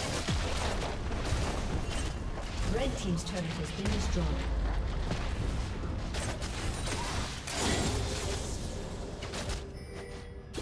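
Game weapons clash and thud in rapid hits.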